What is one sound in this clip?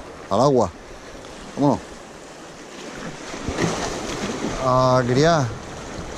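Waves splash against rocks.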